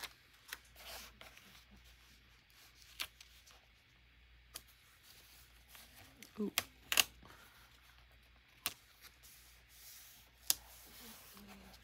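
Fingers tap and press paper onto a page with soft clicks.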